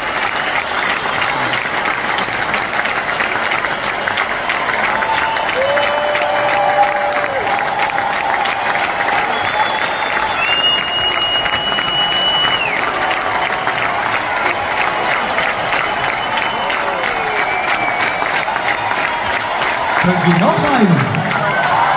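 A large crowd cheers and screams in a big echoing arena.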